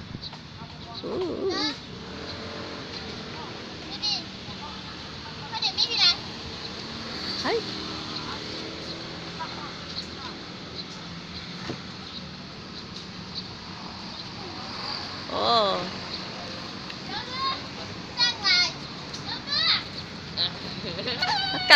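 A young child calls out and squeals nearby.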